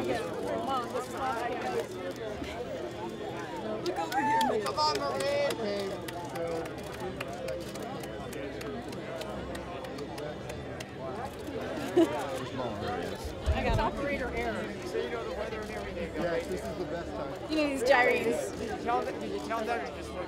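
A small crowd of adults chats and laughs in the background.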